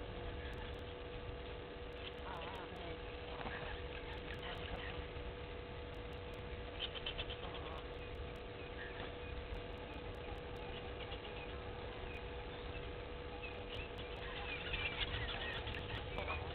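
Small birds chirp and twitter by the water.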